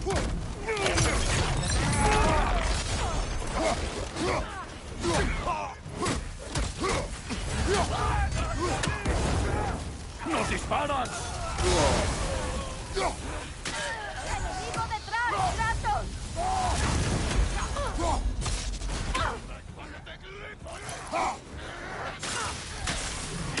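Heavy weapon blows strike enemies with loud thuds.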